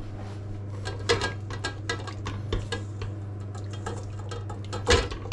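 A spatula scrapes and clinks against a metal bowl.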